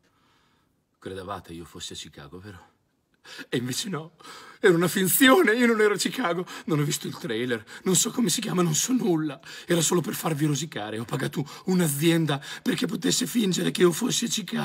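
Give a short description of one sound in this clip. A middle-aged man talks calmly and close by.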